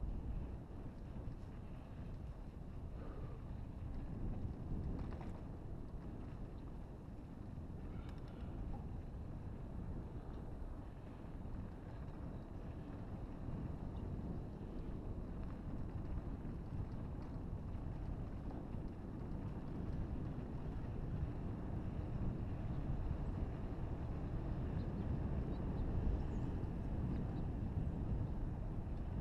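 Tyres roll and crunch over a dirt trail.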